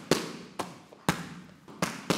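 Boxing gloves thump sharply against a target.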